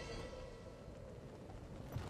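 A large creature's wings beat with a heavy whoosh.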